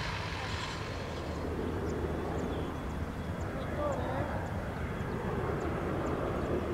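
A jet airliner roars overhead.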